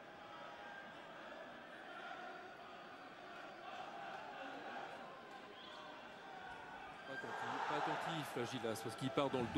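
A large stadium crowd chants and roars steadily.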